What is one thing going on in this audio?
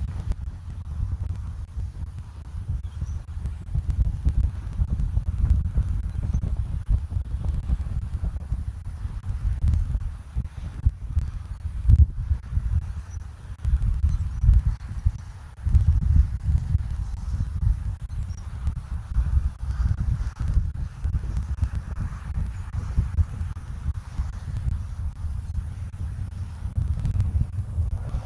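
Wind gusts outdoors, rumbling against the microphone.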